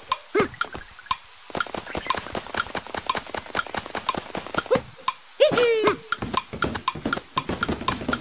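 Rapid rhythmic tapping sounds as a figure climbs a pole.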